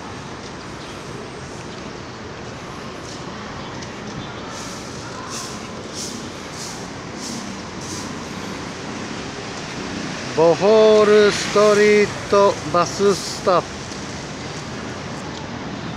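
A broom sweeps across pavement with scratchy strokes.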